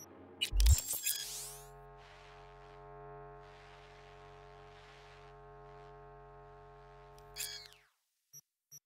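Soft electronic music hums steadily.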